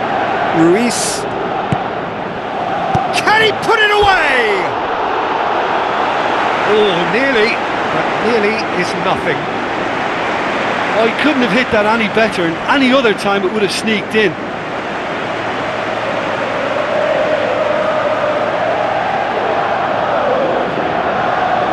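A large stadium crowd roars steadily, swelling louder near the end.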